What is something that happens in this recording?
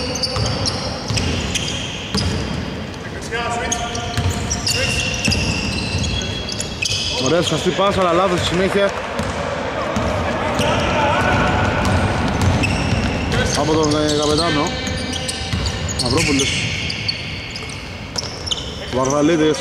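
Men call out to each other across the court.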